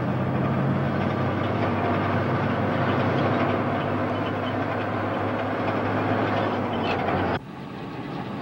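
A truck engine rumbles loudly and steadily.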